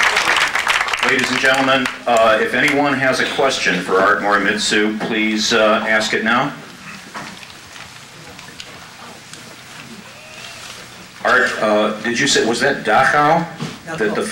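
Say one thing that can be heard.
A middle-aged man speaks into a microphone over a loudspeaker in a hall.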